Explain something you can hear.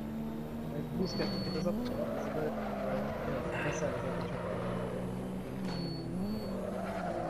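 A racing car engine blips sharply as the gears shift down before corners.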